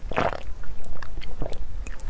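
A young woman gulps a drink.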